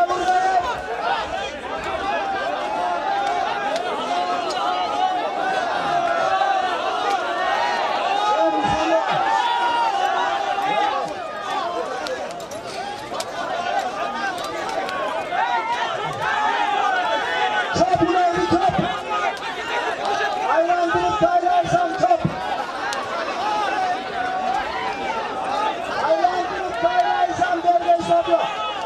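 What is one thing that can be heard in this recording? A large crowd of men shouts and calls out excitedly outdoors.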